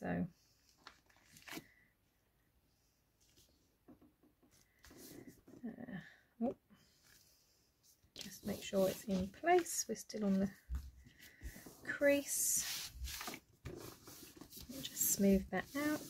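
Paper rustles and slides as it is handled and folded.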